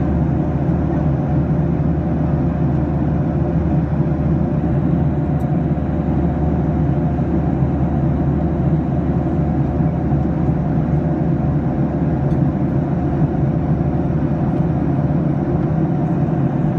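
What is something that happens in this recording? A jet engine roars steadily, heard from inside an aircraft cabin.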